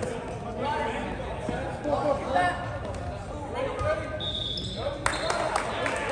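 A volleyball is struck.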